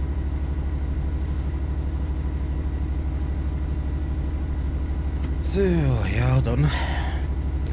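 A diesel locomotive engine rumbles with a steady throbbing pulse.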